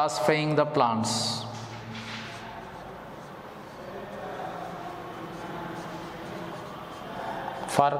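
A marker scratches on a whiteboard.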